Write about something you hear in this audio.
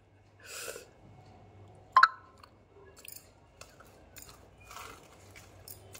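A woman bites into a crunchy biscuit and chews.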